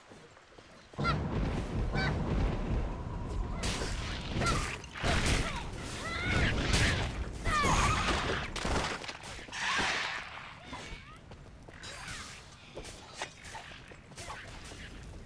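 Magic blasts whoosh and crackle during a fight.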